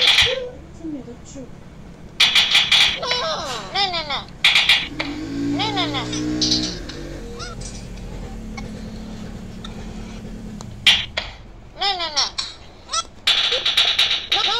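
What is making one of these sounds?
Cartoon cat voices chatter and sing in high, squeaky tones through small device speakers.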